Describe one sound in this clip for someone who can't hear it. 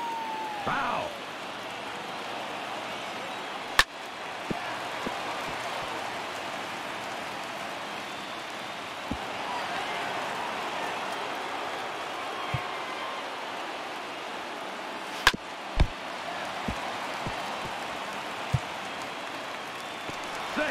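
A stadium crowd murmurs and cheers steadily.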